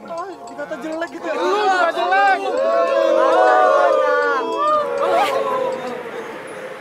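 A young man shouts with animation close by.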